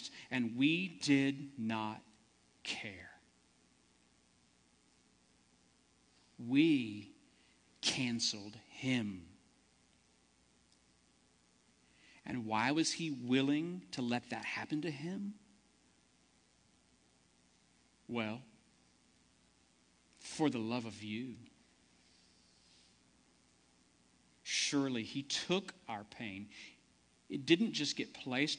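A man preaches calmly through a microphone, with pauses.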